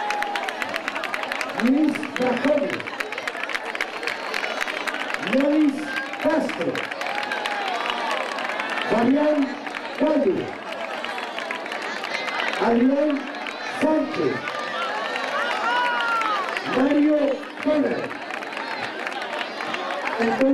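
A crowd of children and adults chatters and shouts nearby, outdoors.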